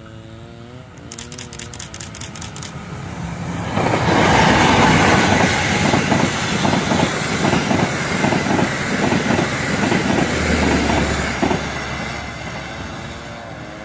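A diesel locomotive approaches and roars past close by.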